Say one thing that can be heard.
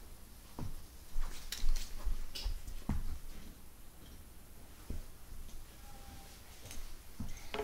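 Soft footsteps thump on carpet.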